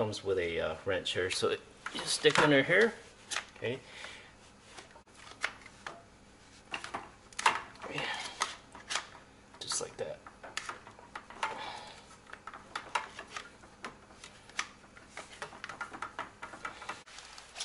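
Plastic tubing and fittings click and rattle as hands handle them.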